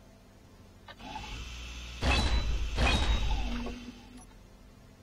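An electric grinder whirs briefly.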